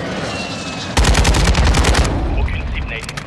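An assault rifle fires.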